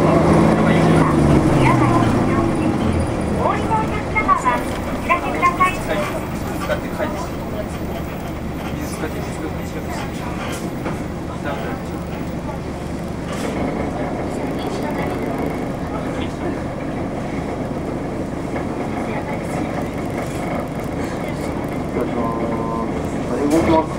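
Tyres rumble steadily on a road from inside a moving car.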